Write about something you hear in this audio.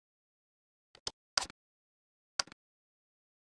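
Menu selections click sharply a few times in silence.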